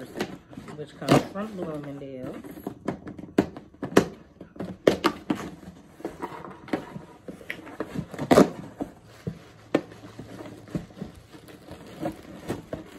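Cardboard rustles and scrapes as a box is opened.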